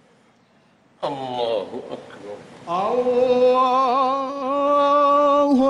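A man chants a long drawn-out call through loudspeakers in a large echoing hall.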